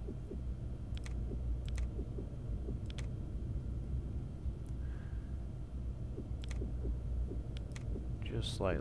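Short interface clicks sound now and then as items are selected.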